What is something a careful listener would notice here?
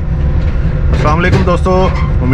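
Train wheels squeal on a curve.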